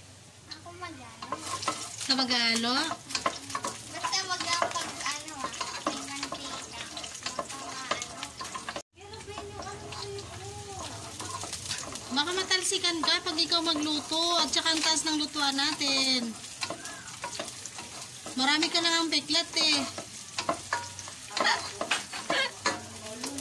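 A wooden spoon stirs and scrapes inside a metal pot of liquid.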